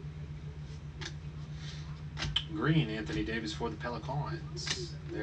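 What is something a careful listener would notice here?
Trading cards slide and rustle against each other.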